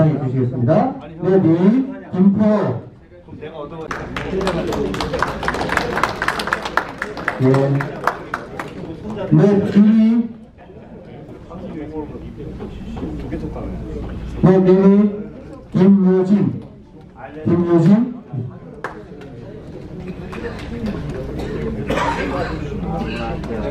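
A man speaks into a microphone over a loudspeaker in an echoing room.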